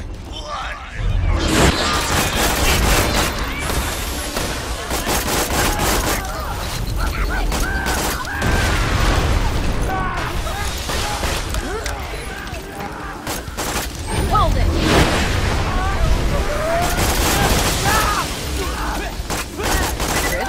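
Rapid gunfire blasts in quick bursts.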